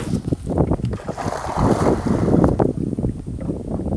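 A cast net splashes into the water.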